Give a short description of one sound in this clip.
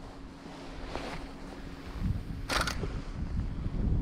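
A fishing rod swishes through the air in a cast.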